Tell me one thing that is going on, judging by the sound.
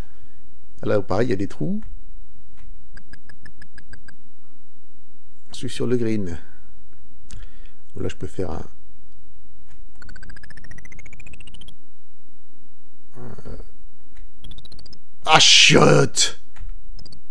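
A middle-aged man speaks calmly and close to a microphone, in short bursts.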